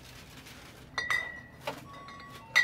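Glass bottles clink together on a shelf.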